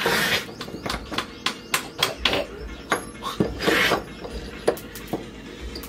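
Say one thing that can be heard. A cloth rubs against a metal blade.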